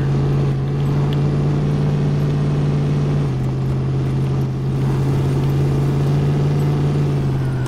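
Tyres crunch over a muddy dirt track.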